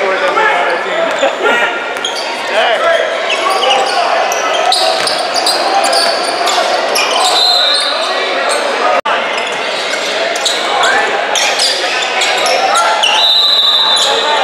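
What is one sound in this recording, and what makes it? A crowd of spectators chatters loudly in a large echoing hall.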